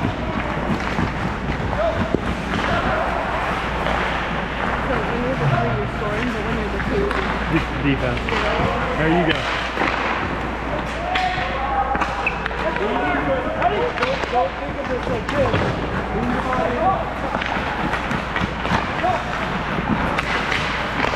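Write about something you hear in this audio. Hockey sticks clack against pucks and ice.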